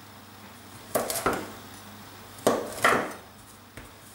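A metal dough scraper scrapes against a wooden board.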